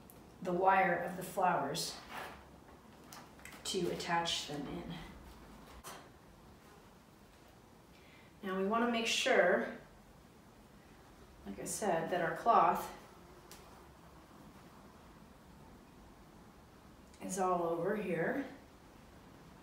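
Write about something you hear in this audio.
A woman speaks calmly in short bursts, close by.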